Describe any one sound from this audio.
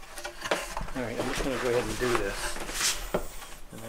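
Wooden boards knock together.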